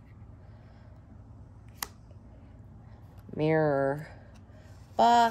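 Playing cards rustle softly as they are handled.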